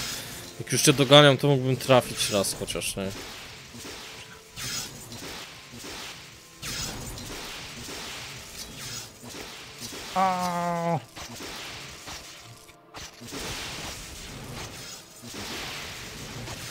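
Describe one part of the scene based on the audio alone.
A magic beam crackles and hums steadily.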